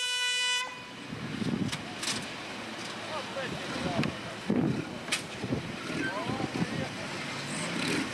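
Off-road vehicle engines rumble and rev.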